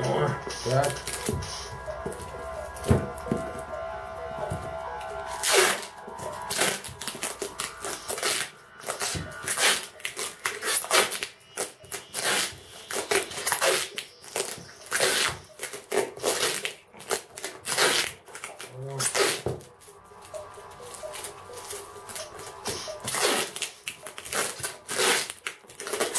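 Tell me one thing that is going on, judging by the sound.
Packing tape screeches as it is pulled off the roll and stuck around a box.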